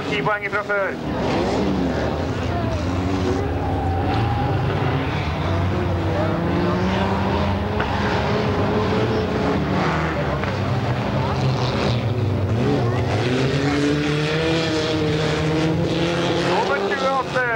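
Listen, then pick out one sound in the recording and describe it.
Rally car engines roar and rev loudly.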